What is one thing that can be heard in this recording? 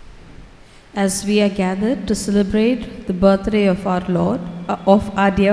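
A woman sings through a loudspeaker in a large echoing hall.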